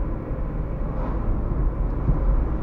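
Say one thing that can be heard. A heavy truck passes by in the other direction.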